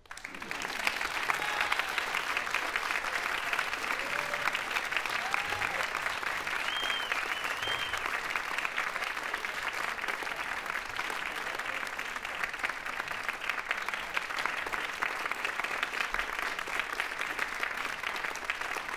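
A large audience applauds in a big echoing hall.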